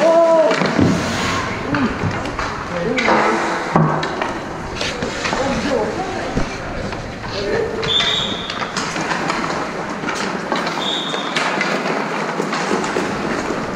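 Ice skates scrape and hiss across an ice rink.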